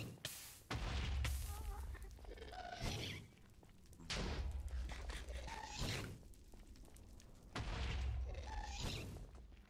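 Fire crackles nearby.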